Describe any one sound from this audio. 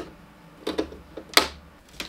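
A screwdriver turns screws with faint clicks.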